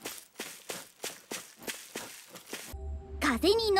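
Footsteps fall on dry ground.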